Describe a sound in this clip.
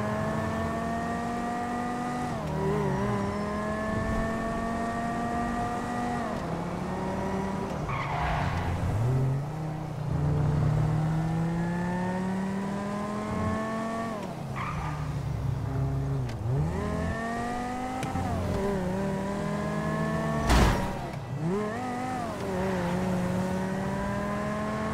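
A car engine revs up and down as gears shift.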